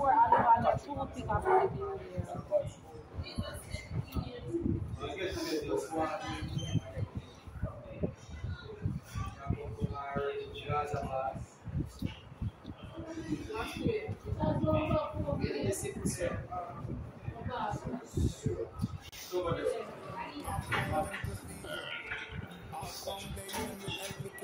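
Several young men and women talk casually nearby, in a room with some echo.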